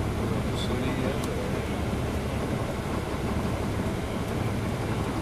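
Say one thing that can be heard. A bus engine idles with a steady low rumble, heard from inside.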